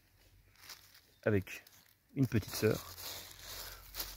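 Dry leaves rustle and crunch as a hand digs through them.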